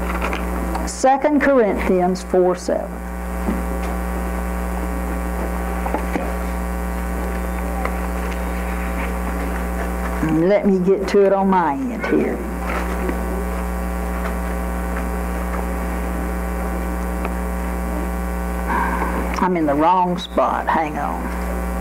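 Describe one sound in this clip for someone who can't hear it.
An elderly woman speaks calmly into a microphone in short bursts.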